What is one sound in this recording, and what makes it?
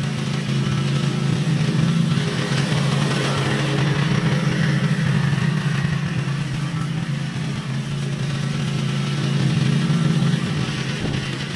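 A lawn mower engine drones steadily close by.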